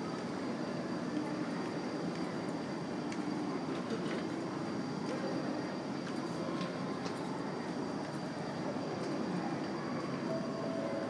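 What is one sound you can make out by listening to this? A large, echoing hall hums with a steady low murmur.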